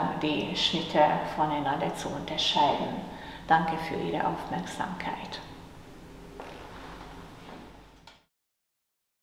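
A woman speaks calmly, as if giving a lecture.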